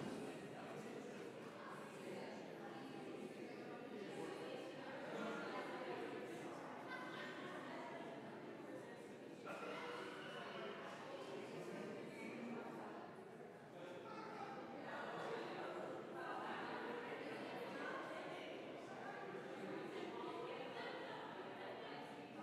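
A crowd of people murmurs and talks softly in a large echoing hall.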